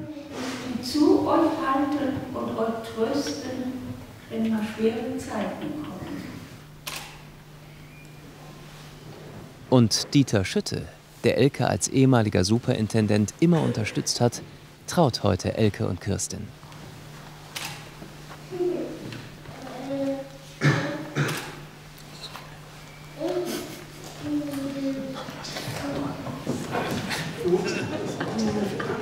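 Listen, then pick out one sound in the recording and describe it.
An elderly man speaks calmly in a slightly echoing room.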